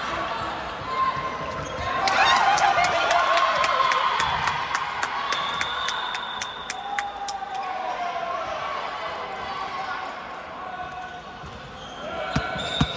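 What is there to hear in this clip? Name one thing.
A volleyball thumps off hands and the floor.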